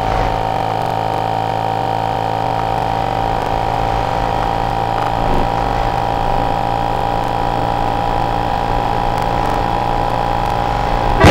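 A motorcycle engine drones steadily while cruising at speed.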